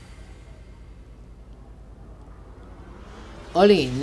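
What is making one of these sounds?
A magical shimmer rings out as an object bursts into light.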